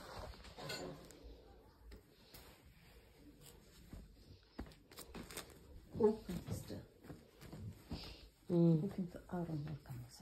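Cloth rustles softly as a hand handles it.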